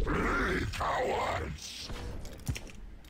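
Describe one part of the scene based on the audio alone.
Electronic blasts and whooshes of game combat ring out.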